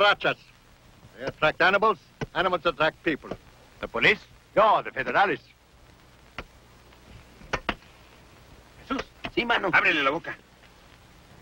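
An elderly man speaks firmly nearby.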